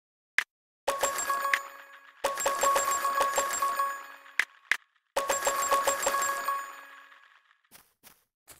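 Bright chiming game shop sounds ring out in quick bursts.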